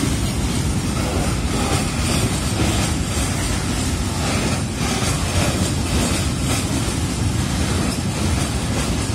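Wagon wheels knock rhythmically over rail joints.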